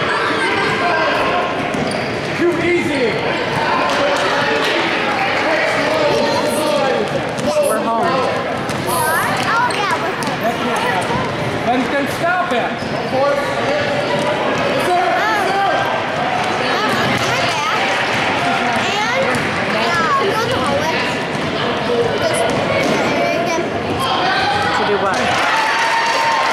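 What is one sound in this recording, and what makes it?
A crowd of spectators chatters and cheers loudly in a large echoing gym.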